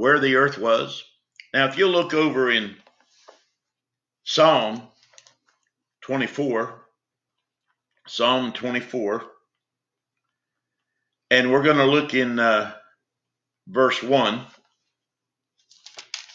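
An elderly man speaks calmly in short phrases, close to a microphone.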